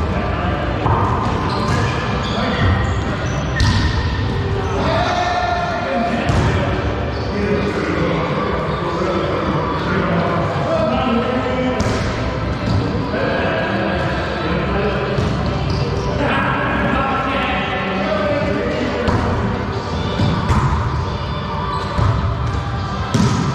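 A volleyball is struck with a slap.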